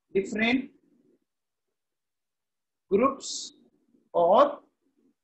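A man speaks calmly into a close microphone, in short phrases.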